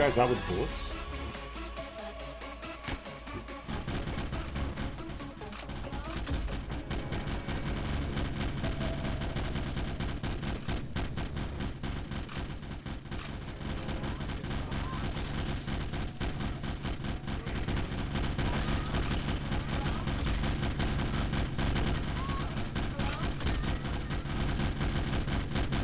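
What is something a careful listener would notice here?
Rapid laser gunfire crackles in a close fight.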